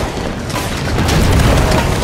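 Energy guns fire in quick bursts.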